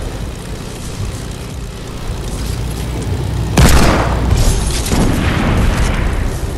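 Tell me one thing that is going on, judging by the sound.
A small propeller plane engine drones steadily.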